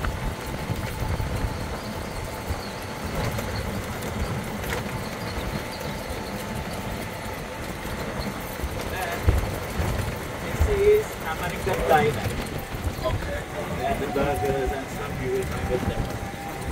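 An electric cart hums as it rolls along a paved path.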